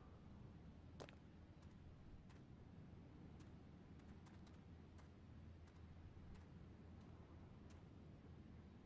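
Footsteps tread softly on grass.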